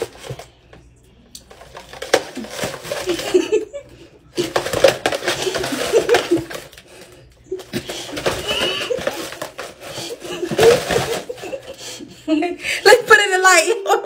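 Packages rustle and thump as they are handled.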